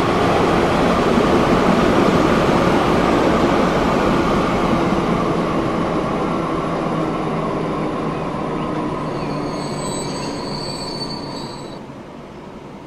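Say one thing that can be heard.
An electric train rumbles along the rails and slowly fades.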